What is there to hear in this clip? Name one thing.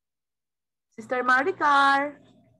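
A middle-aged woman speaks with animation through a headset microphone on an online call.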